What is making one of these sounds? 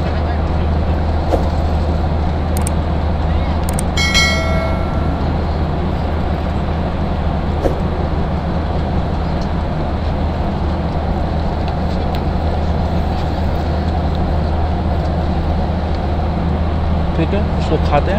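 A plastic wrapper crinkles in a man's hands.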